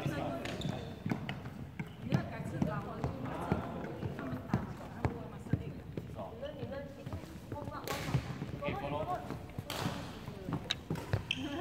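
A badminton racket strikes shuttlecocks in a large echoing hall.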